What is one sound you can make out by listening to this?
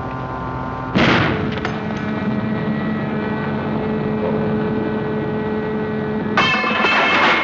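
A large machine hums steadily.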